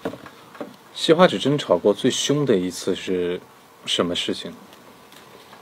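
A young man reads out and talks with animation close to a microphone.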